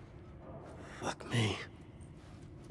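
A man mutters a curse in a low voice.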